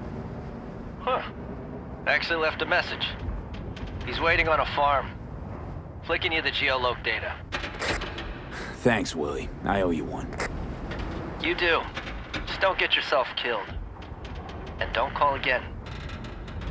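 A man speaks over a handheld radio in short bursts.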